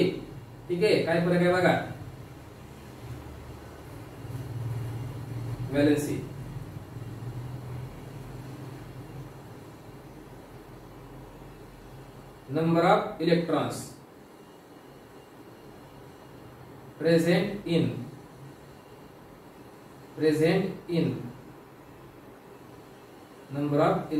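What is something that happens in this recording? A man speaks calmly in short phrases with long pauses.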